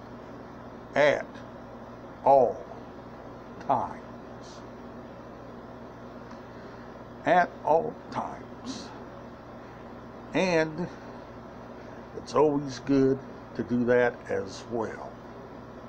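A middle-aged man speaks close to the microphone in short bursts, with animation.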